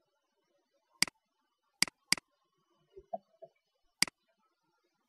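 A computer mouse clicks sharply a few times.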